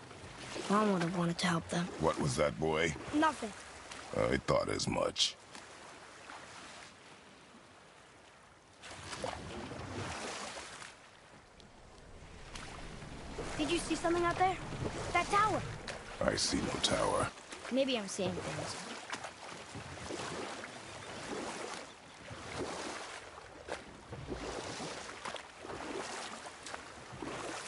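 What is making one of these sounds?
Oars splash through water as a boat is rowed.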